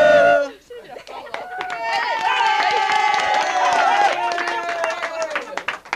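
A group of young women clap their hands.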